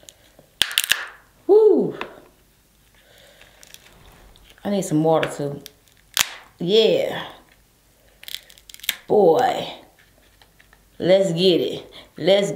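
Crab shell cracks and snaps between fingers.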